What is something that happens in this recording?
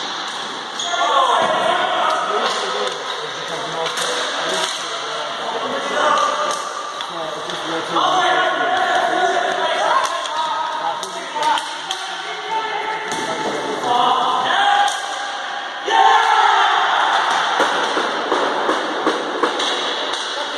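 Young men shout and call out, echoing in a large hall.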